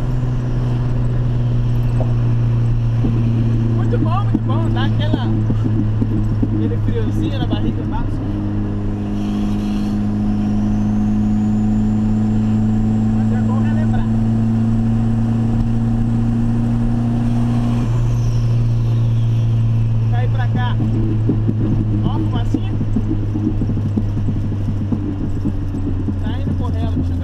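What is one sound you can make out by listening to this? A turbocharged car engine drones from inside the cabin as the car cruises on a highway.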